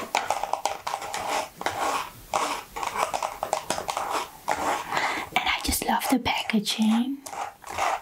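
Cardboard boxes rustle and scrape as hands handle them.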